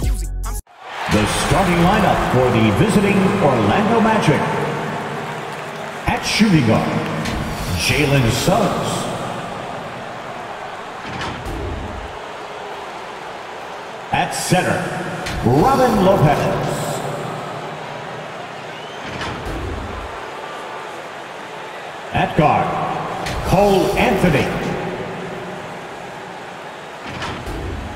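A crowd murmurs and cheers in a large echoing arena.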